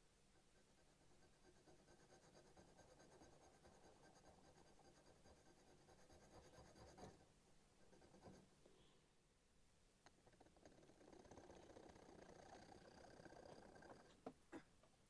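A metal file rasps back and forth against metal in quick strokes.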